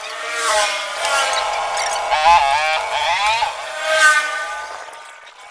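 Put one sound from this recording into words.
A motorbike passes by on the road.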